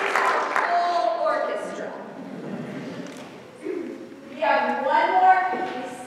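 A piano plays along with a choir.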